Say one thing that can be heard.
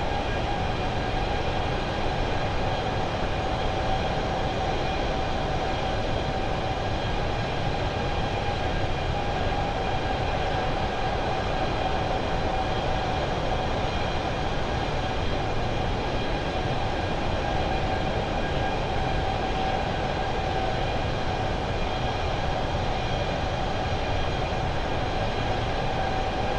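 Jet engines roar and whine steadily.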